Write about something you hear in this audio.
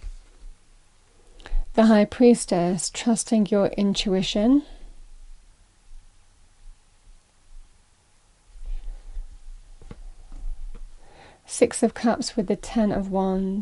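A card is laid softly on a table.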